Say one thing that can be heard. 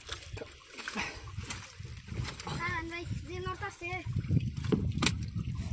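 A bundle of reeds swishes and splashes through water.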